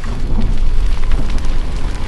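Flames crackle.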